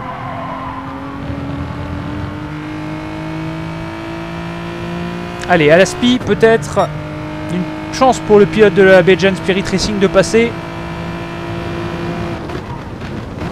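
A racing car engine roars and climbs steadily in pitch as it speeds up.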